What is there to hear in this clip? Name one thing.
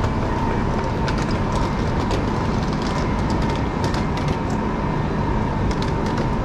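Suitcase wheels roll and clatter over a hard platform.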